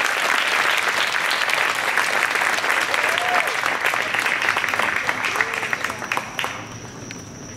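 An audience claps and cheers outdoors.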